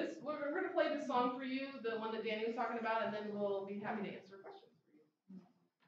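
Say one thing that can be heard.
A woman speaks to an audience.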